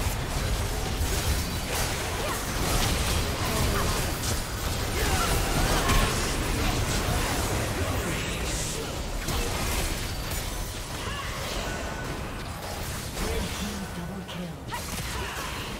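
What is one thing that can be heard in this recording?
Magic spells crackle and blast in a hectic fight.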